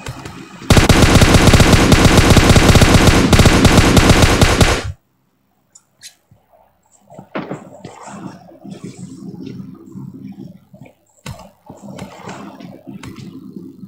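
Footsteps shuffle slowly across a floor.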